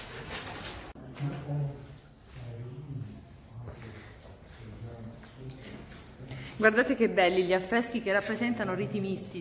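A woman talks nearby in a calm, friendly voice.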